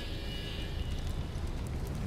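A fire crackles and hisses nearby.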